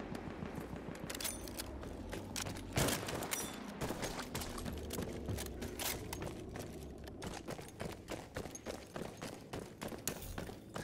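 Rifle shots crack in quick bursts nearby.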